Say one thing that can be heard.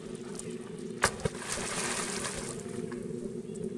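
Water splashes loudly as a monkey jumps in.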